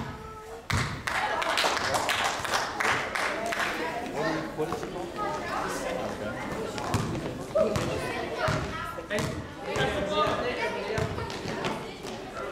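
Children shout and call out across an echoing hall.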